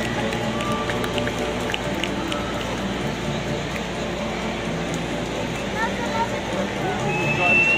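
A large crowd cheers and roars throughout a big arena.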